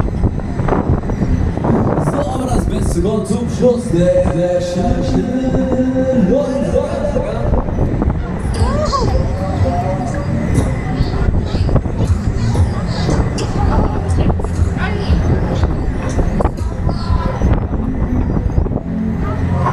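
Loud pop music plays over loudspeakers.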